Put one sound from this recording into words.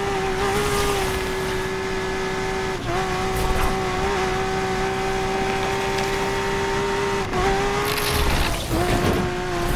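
A racing car engine roars at high revs, dipping briefly with each gear shift.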